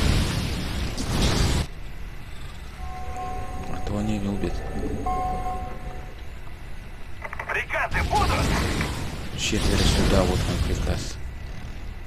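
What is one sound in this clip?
Gunfire and explosions rattle and boom in a battle.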